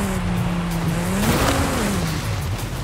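A car scrapes against a wall.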